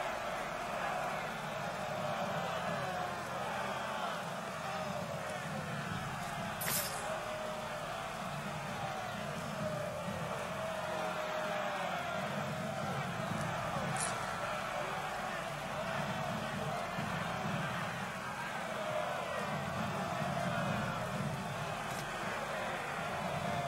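A large crowd murmurs and shouts steadily.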